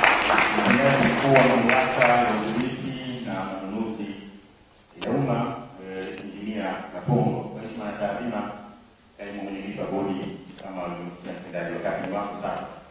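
A man speaks calmly into a microphone over a loudspeaker in a large hall.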